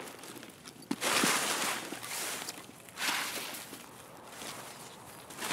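Leaves and branches rustle as someone pushes through bushes.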